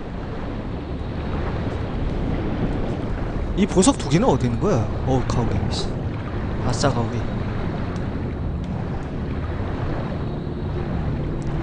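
A swimmer strokes through water, heard muffled underwater.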